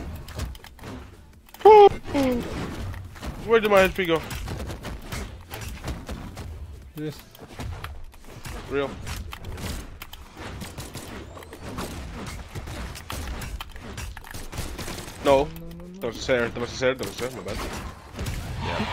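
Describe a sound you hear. Quick game hits and whooshes crack throughout.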